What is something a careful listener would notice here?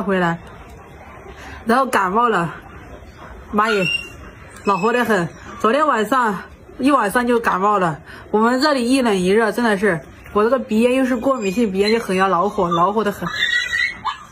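A young woman talks with animation close by.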